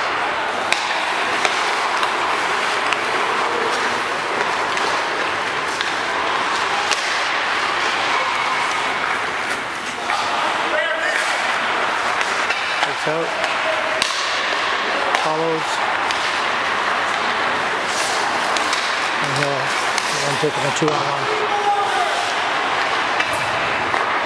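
Hockey pucks clack against sticks and boards.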